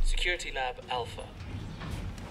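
A man speaks briefly and calmly nearby.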